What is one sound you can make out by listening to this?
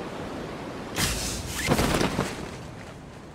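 A parachute snaps open with a sudden flapping whoosh.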